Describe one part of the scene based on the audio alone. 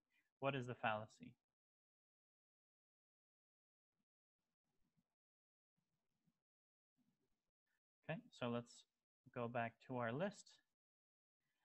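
A young man speaks calmly into a close microphone, in short phrases with pauses.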